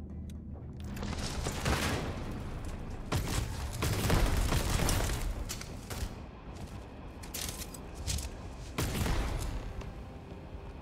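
Energy weapon fire crackles and zaps in loud bursts.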